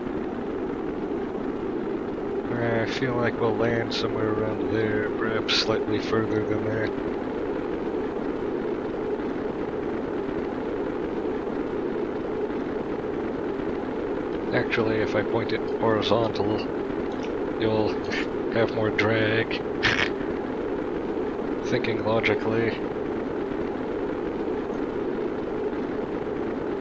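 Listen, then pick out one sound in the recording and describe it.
A steady, rushing roar of flame goes on throughout.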